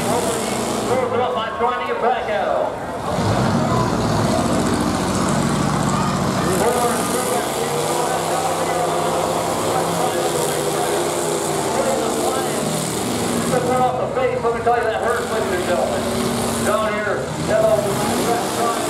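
A crowd cheers and shouts nearby.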